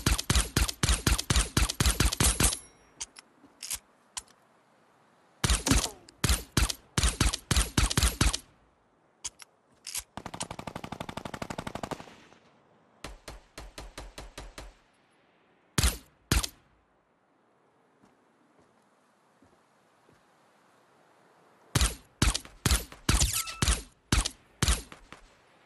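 Rapid gunshots fire in short bursts, close by.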